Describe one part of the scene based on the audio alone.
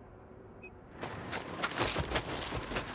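A rifle fires in quick bursts close by.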